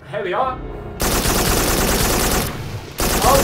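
A gun fires in a loud burst.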